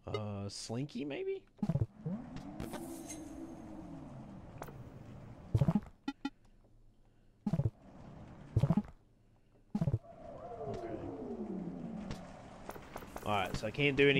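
Short electronic blips sound from a video game menu.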